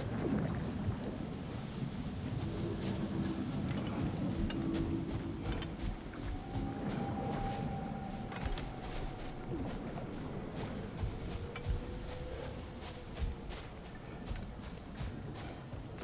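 Heavy footsteps crunch on rocky ground.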